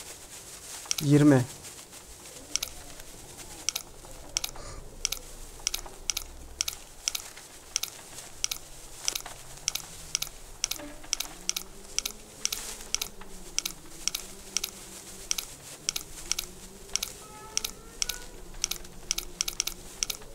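A safe dial clicks steadily as it turns.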